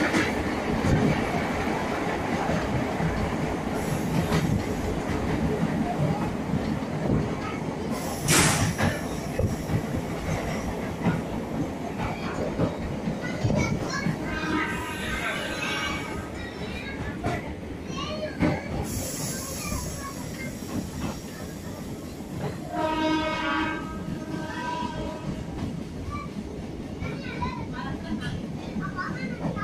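A train rumbles and rattles steadily along the tracks, heard from an open doorway.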